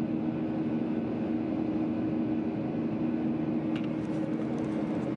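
Jet engines roar with a steady, low drone inside an airplane cabin in flight.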